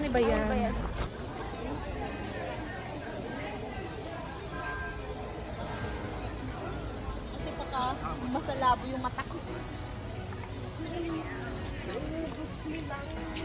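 A crowd of people chatters quietly outdoors.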